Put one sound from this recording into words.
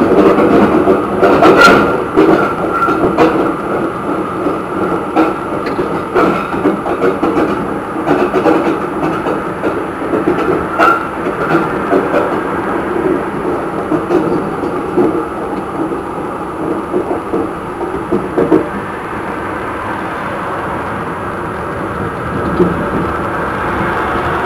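A tram rumbles steadily along rails.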